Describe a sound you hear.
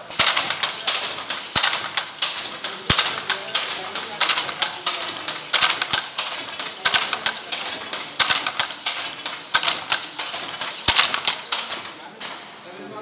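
A wooden handloom clacks and thumps rapidly as it weaves.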